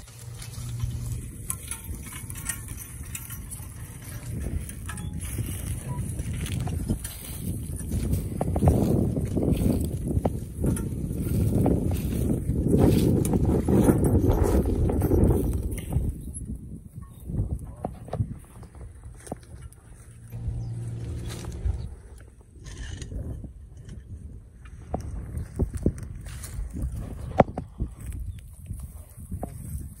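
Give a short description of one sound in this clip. A horse-drawn plough scrapes and rattles through the soil.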